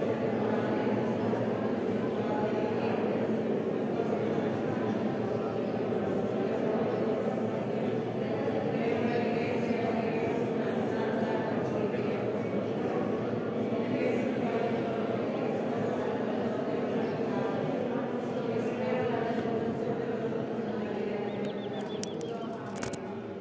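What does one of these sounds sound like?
A man speaks calmly through a microphone in a reverberant room.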